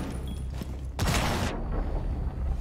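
A loud explosion bursts nearby.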